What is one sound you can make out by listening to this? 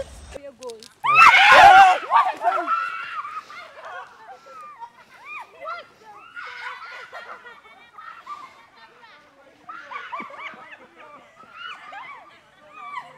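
Young people shout and laugh outdoors.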